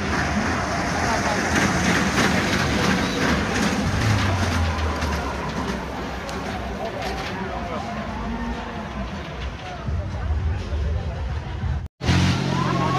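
A crowd chatters and murmurs all around outdoors.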